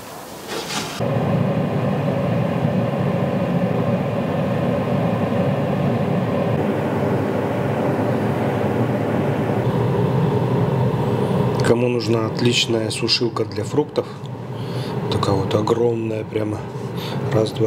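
A fan whirs with a steady hum.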